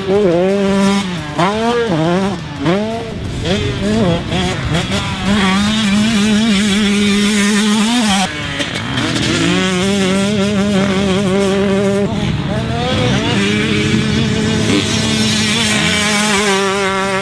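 A dirt bike engine revs and roars loudly, rising and falling in pitch.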